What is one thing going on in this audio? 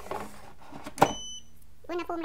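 An air fryer basket shuts with a sharp clunk.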